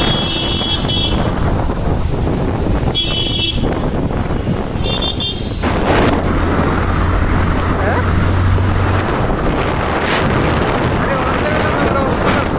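Wind rushes loudly past a moving motorbike.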